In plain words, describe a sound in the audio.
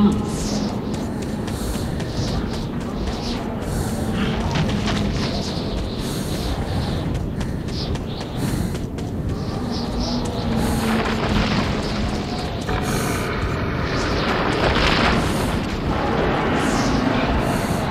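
Footsteps crunch over rubble and snow.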